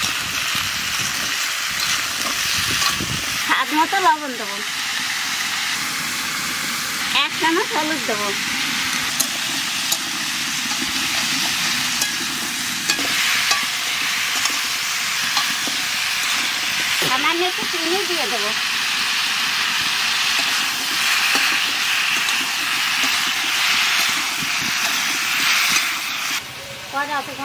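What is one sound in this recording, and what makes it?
Vegetable pieces sizzle in oil in a wok.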